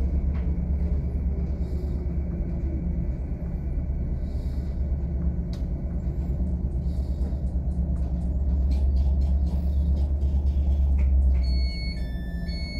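A train rumbles steadily along the tracks and slows to a stop.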